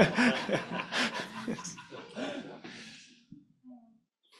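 A small group of adults laugh together.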